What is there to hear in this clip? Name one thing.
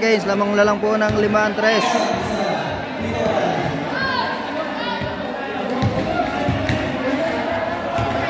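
A crowd of young people shouts and cheers in a large echoing hall.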